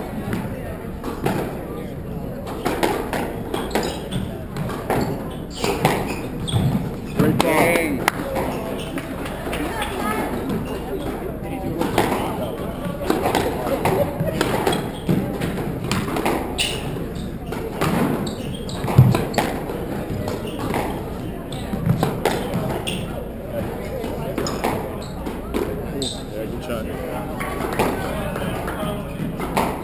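A squash ball smacks sharply against the walls, echoing through a large hall.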